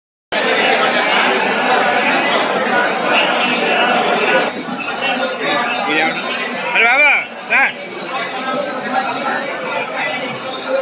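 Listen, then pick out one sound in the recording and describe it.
A crowd of people chatters in a busy, echoing space.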